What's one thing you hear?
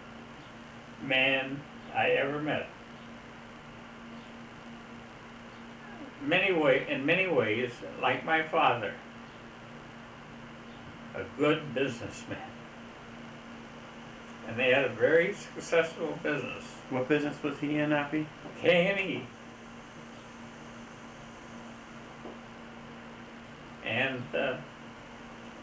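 An elderly man speaks calmly and slowly, close by, in short bursts with pauses.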